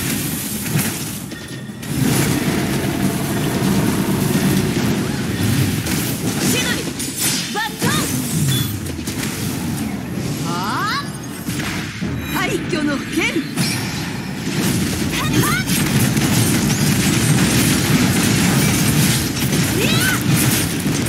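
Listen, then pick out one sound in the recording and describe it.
Fast sword slashes and crackling blasts ring out in quick succession.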